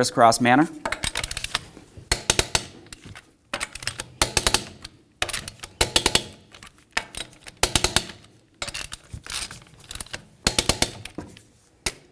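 A ratchet wrench clicks rapidly in short bursts.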